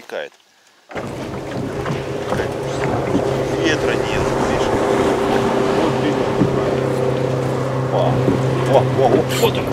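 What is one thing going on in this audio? A boat motor drones steadily.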